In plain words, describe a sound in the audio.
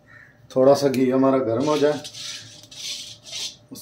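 A metal ladle scrapes and clinks against a wok.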